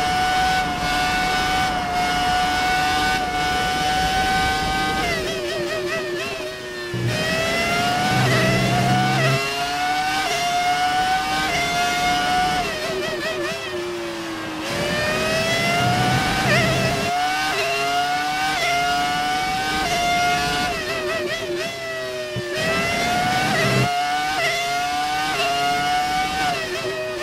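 A racing car engine screams at high revs, rising through the gears and dropping as it brakes.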